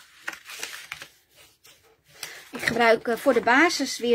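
A plastic folding tool scrapes along a paper crease.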